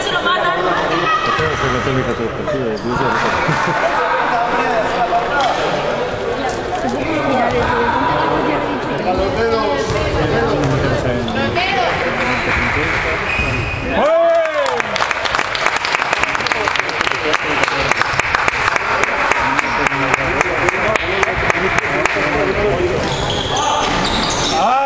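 People talk and call out in an echoing sports hall.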